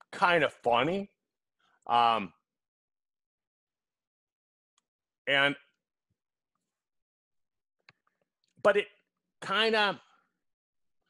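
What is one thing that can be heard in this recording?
A middle-aged man speaks in short phrases through a headset microphone, as on an online call.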